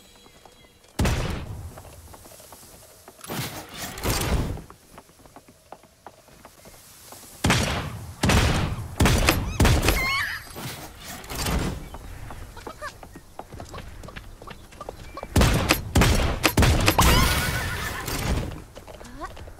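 Gunshots fire in bursts, loud and close.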